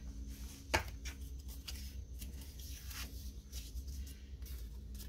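Paper pages rustle and slide as they are handled.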